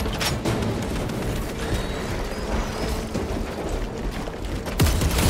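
Heavy armoured footsteps thud on soft ground.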